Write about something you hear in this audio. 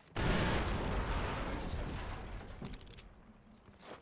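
An explosion booms and rumbles away.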